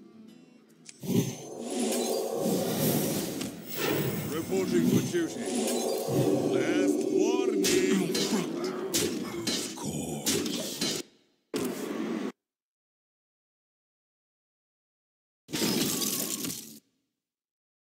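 Electronic game sound effects whoosh, clink and chime.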